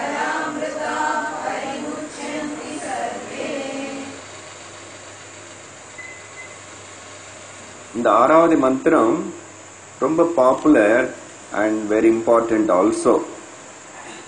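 An elderly man speaks calmly into a clip-on microphone, close by.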